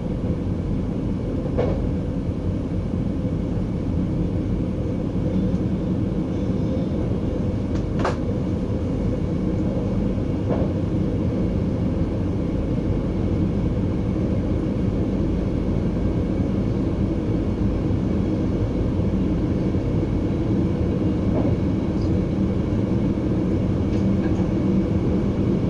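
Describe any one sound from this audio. A train rumbles steadily along the rails from inside the cab.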